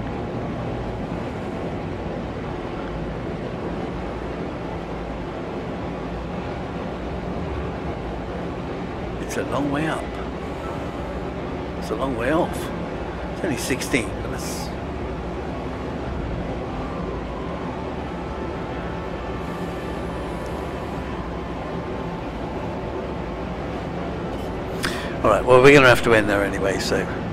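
A spaceship engine hums with a steady low drone.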